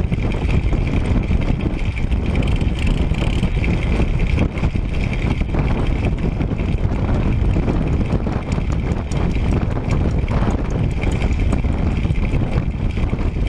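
Wind buffets a microphone loudly while moving outdoors.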